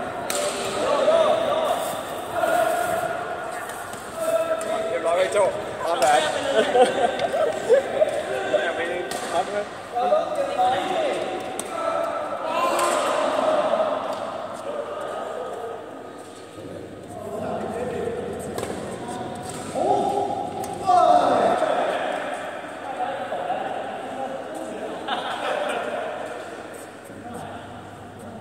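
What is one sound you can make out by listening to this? Young men talk in a large echoing hall.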